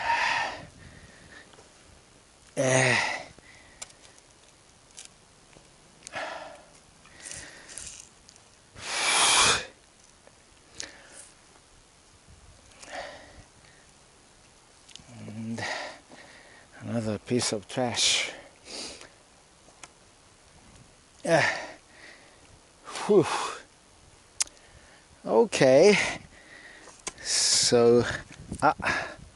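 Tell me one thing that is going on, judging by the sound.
A man talks with animation close by, in bursts.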